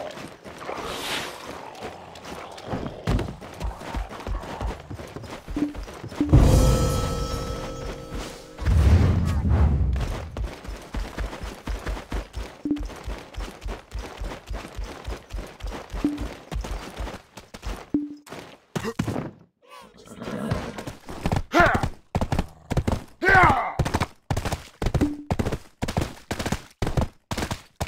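Quick footsteps thud steadily on the ground.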